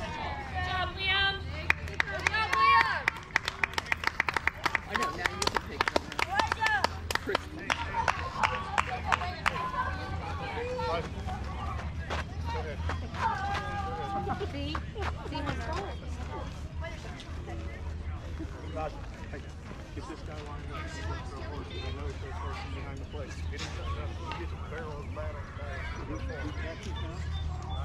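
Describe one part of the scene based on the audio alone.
Boys and men shout and cheer outdoors.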